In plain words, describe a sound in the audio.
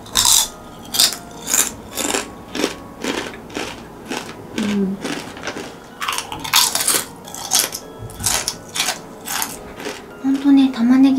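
A young woman crunches crisp snacks loudly close to a microphone.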